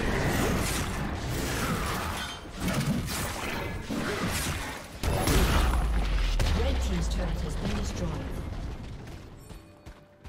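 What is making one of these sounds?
Magic blasts and sword strikes crash and whoosh in a fast fight.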